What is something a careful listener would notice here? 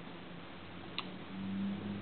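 A pocketknife blade snaps shut with a click.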